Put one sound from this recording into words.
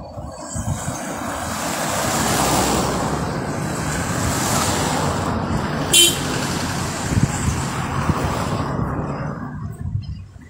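Cars drive past on a road nearby.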